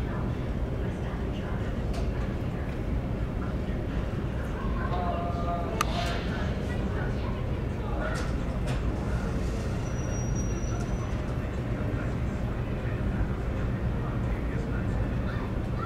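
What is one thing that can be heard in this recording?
A jet engine hums steadily as a passenger plane taxis close by.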